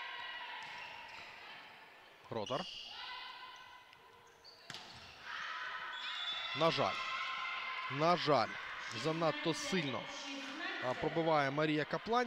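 A volleyball is struck hard with sharp slaps in a large echoing hall.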